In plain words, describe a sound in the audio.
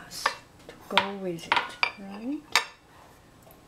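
A glass clinks against a ceramic plate.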